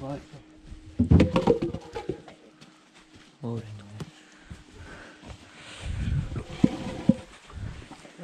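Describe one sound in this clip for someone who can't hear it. Heavy logs thud and knock together as they are moved.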